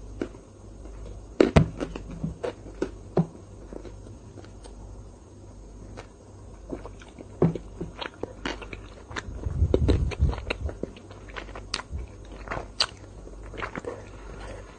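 A young woman chews and makes wet mouth sounds close to a microphone.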